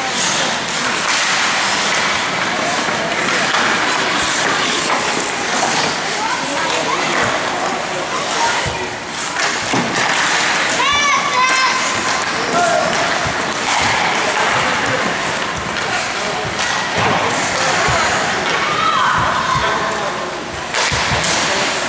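Ice skates scrape and hiss across the ice in a large echoing hall.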